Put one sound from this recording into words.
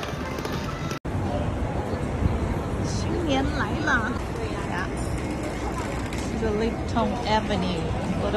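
A crowd of people chatters along a busy street.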